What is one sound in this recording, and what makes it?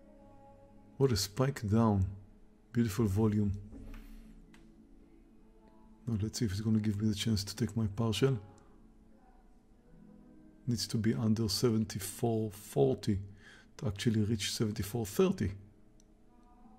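An older man talks calmly and closely into a microphone, with pauses.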